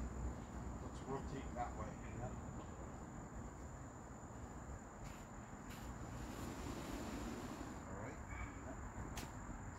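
Men talk briefly in the distance.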